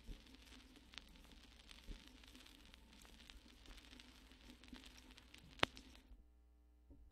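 A vinyl record crackles and hisses as it plays on a turntable.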